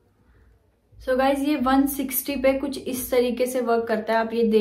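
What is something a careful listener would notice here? A young woman speaks calmly close to the microphone.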